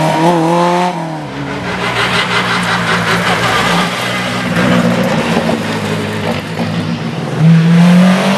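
A second rally car revs hard through a bend and speeds off.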